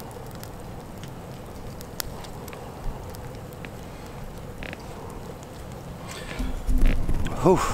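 A small campfire crackles softly.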